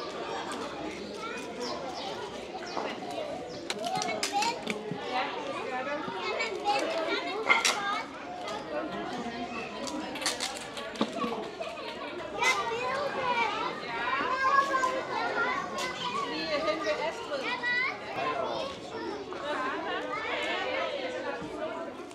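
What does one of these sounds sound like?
Young children chatter and call out nearby outdoors.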